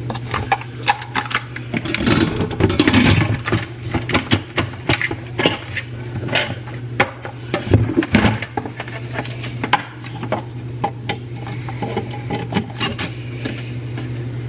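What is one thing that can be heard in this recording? A metal lid clanks and clicks as it is set on a pot and turned.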